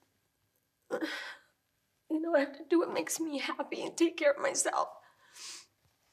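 A woman speaks emotionally and close to a microphone.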